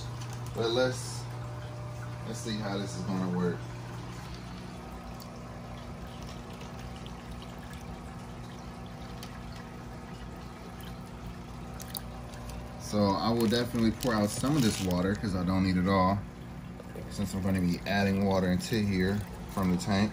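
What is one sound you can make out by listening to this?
Water pours and splashes into a tub.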